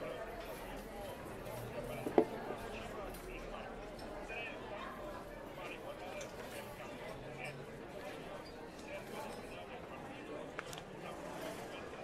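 Cups and dishes clink on a table.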